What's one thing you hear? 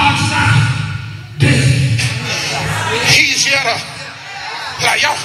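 A man preaches with passion into a microphone, heard through loudspeakers in an echoing hall.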